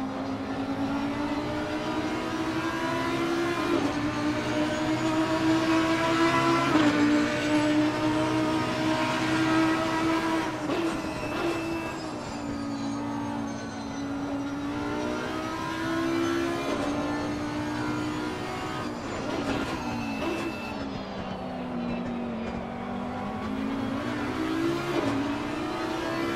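A racing car engine roars steadily, rising and falling in pitch as it shifts gears and slows for corners.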